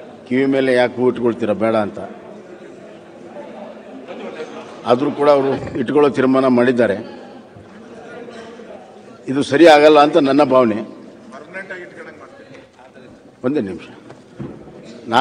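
A middle-aged man speaks steadily into a microphone in a large room.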